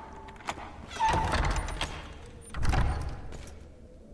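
A heavy wooden door bangs shut with deep, echoing thuds.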